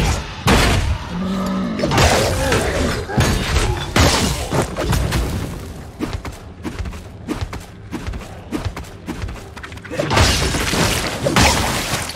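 Weapons strike enemies with sharp hits.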